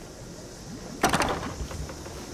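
A heavy metal box clanks open.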